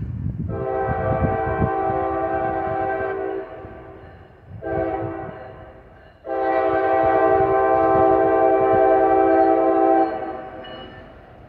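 A train horn blows loud, long blasts nearby.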